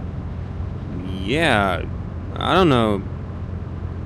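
A younger man answers in a low voice, close by.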